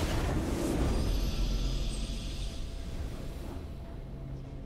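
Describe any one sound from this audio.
A triumphant fanfare blares and fades.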